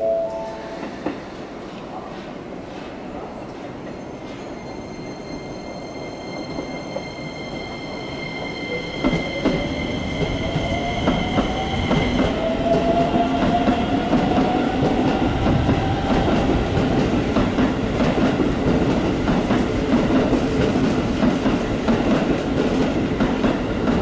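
A train rumbles slowly along the tracks and grows louder.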